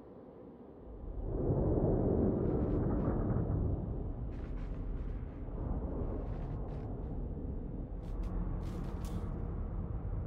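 A deep rumble swells up and roars on.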